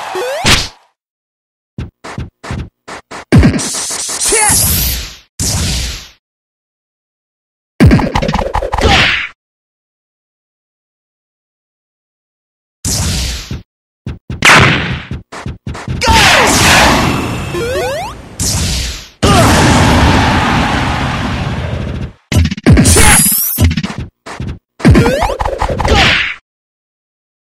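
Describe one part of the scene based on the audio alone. Game sound effects of hits and blasts burst out in short, loud bursts.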